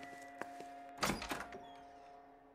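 A door swings open with a thud.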